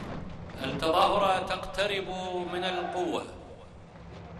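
A large group of men shout together loudly outdoors.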